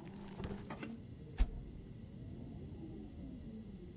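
A refrigerator door clicks open.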